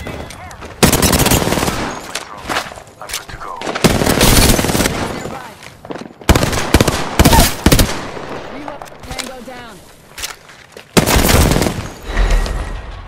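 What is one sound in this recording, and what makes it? A rifle fires in rapid loud bursts.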